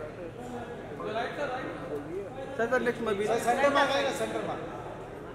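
A middle-aged man speaks cheerfully nearby.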